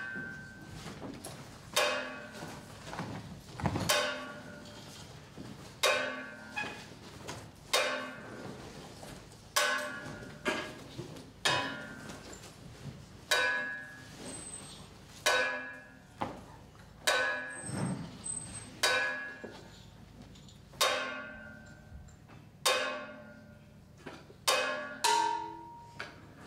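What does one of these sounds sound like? Sharp, ringing tuned knocks sound at a slow, even pace as a stick strikes a wooden instrument.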